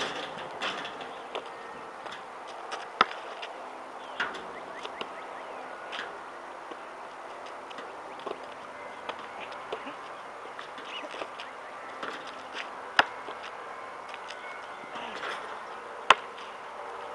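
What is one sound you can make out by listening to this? A basketball clanks off a metal rim.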